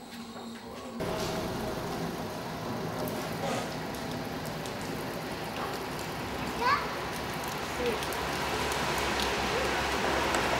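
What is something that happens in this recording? Water splashes steadily from a fountain spout onto stone.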